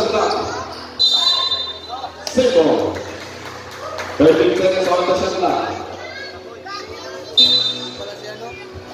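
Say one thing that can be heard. A referee's whistle blows in short, sharp blasts.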